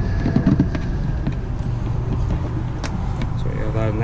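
A plastic hatch door snaps open.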